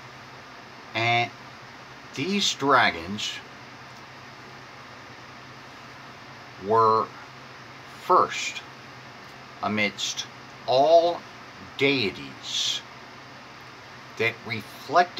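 A middle-aged man speaks close by in short, forceful bursts with pauses between them.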